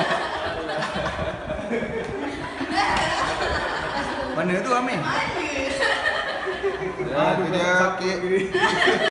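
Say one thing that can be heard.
A woman talks and laughs cheerfully nearby.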